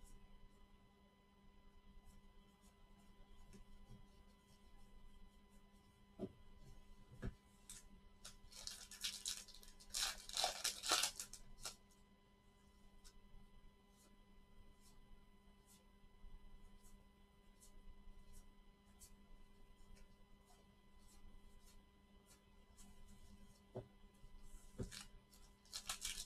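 Trading cards rustle and slide against each other as gloved hands shuffle them.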